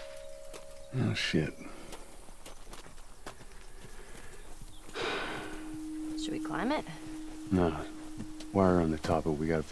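A man speaks in short, muttered phrases.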